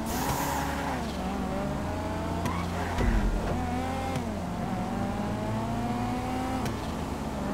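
Other race car engines roar close by.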